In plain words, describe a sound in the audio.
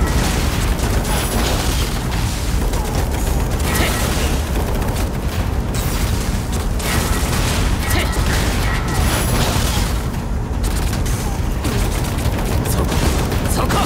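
Gunfire crackles in quick bursts.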